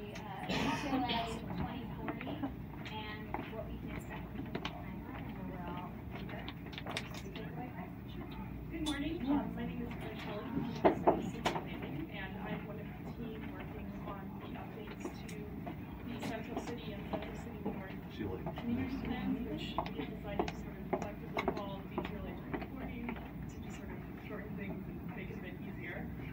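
A woman speaks to a group, a little way off.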